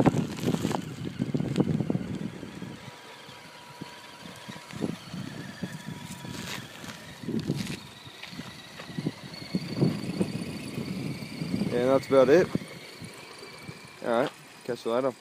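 Small tyres crunch over gravel.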